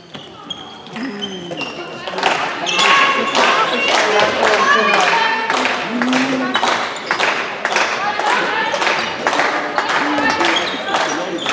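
Young women call out to each other across the echoing hall.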